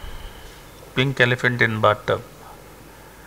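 A man speaks briefly and calmly through a microphone.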